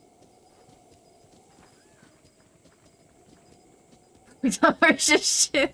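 A horse's hooves thud steadily on grass.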